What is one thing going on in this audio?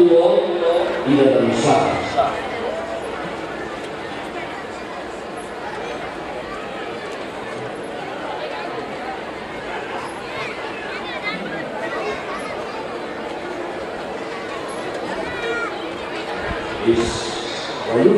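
A large outdoor crowd murmurs and chatters steadily.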